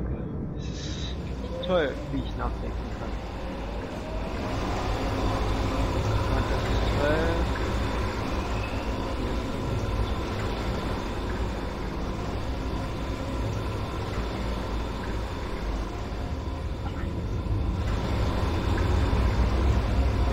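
A deep machine hum drones steadily in a large echoing space.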